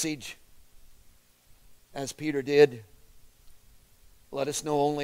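A middle-aged man speaks slowly and clearly nearby, pausing between phrases.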